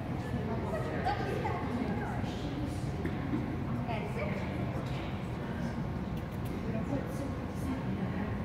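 A woman speaks encouragingly to a dog in a large echoing hall.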